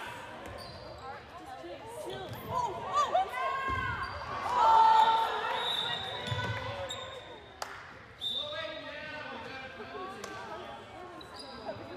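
A ball thuds against the floor.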